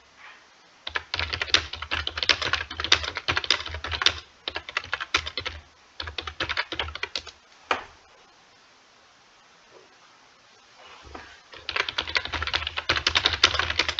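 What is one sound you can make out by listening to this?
Keys clatter rapidly on a keyboard in bursts.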